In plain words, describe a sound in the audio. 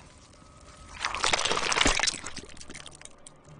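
Flesh tears with a wet, splattering crunch.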